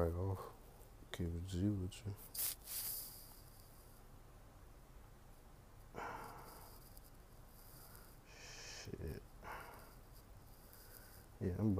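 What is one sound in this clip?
A young man speaks quietly and close up, in short bursts.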